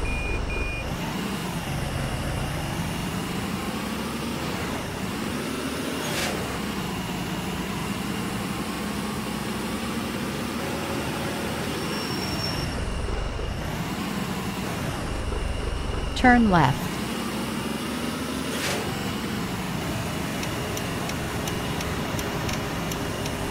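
A truck engine hums steadily, rising and falling in pitch as it speeds up and slows down.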